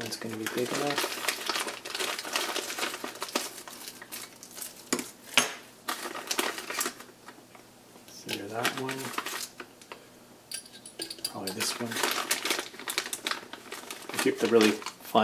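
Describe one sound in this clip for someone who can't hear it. Plastic bags crinkle and rustle close by.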